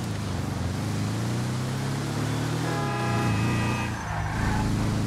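A vehicle engine rumbles steadily, rising and falling in pitch as it drives.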